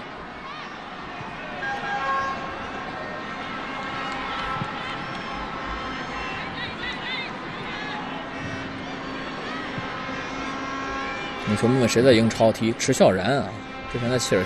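A large stadium crowd murmurs and chants steadily in the distance.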